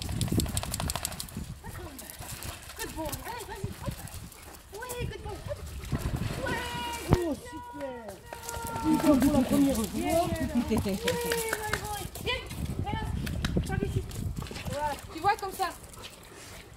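Water splashes as a dog paddles in a pool.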